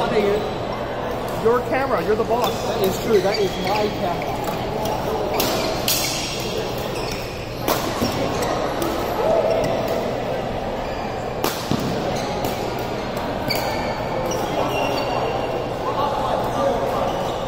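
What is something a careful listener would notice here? Shuttlecocks are struck with rackets, in sharp pops.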